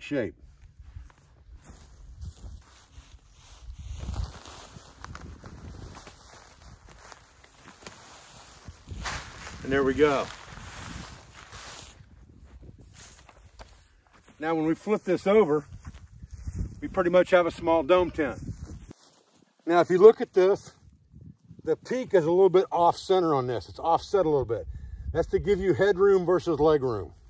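Tent fabric rustles as it is handled.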